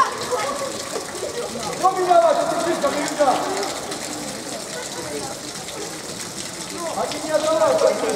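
Children shout and call out across an open outdoor pitch.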